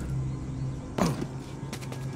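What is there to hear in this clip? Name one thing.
A heavy thud lands once.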